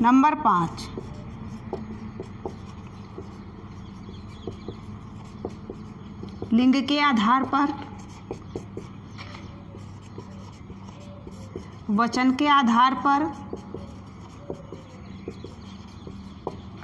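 A marker squeaks and taps as it writes on a board.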